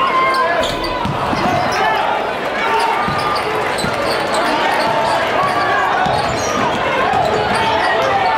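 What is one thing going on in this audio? A basketball thumps as it is dribbled on the floor.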